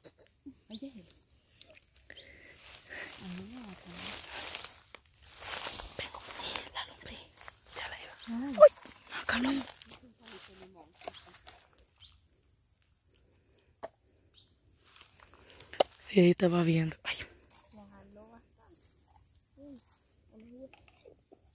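Young women talk and call out to each other outdoors.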